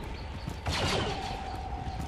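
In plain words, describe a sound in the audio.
A laser blaster fires a sharp zapping shot.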